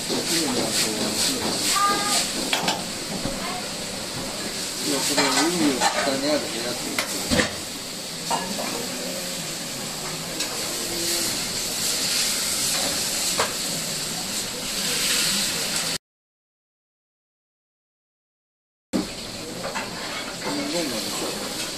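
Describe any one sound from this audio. Food sizzles loudly in a hot wok.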